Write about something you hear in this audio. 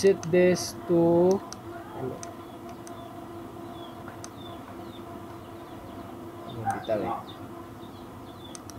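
Fingers click buttons on a control panel.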